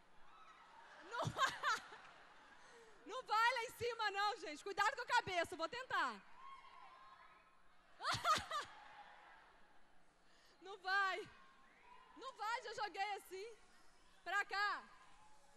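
A young woman sings with passion through a microphone and loudspeakers.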